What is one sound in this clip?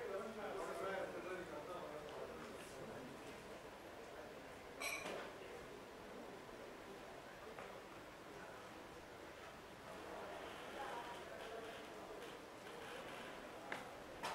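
A man speaks calmly through a microphone and loudspeakers in a large hall.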